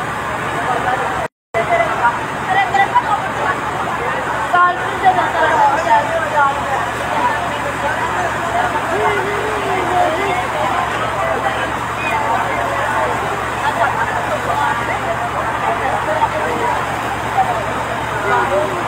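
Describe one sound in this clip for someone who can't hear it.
A crowd of men and women shouts and talks loudly nearby, outdoors.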